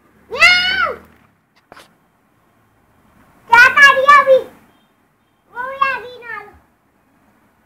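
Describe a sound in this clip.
A young boy speaks in short, high-pitched bursts close by.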